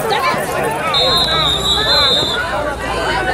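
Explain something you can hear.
A whistle blows shortly.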